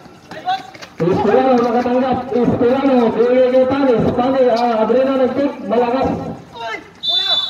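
A young man talks loudly close by.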